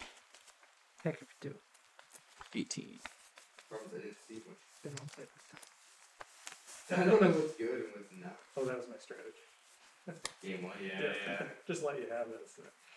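A man speaks calmly, close by.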